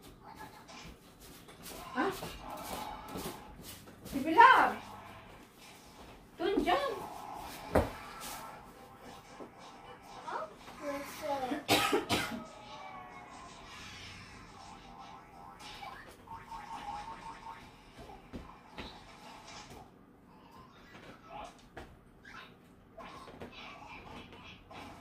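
A little girl squeals and babbles.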